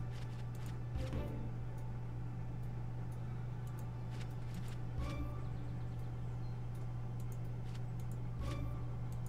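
Short game chimes and whooshes sound as cards are picked.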